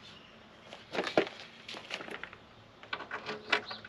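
A metal latch clicks.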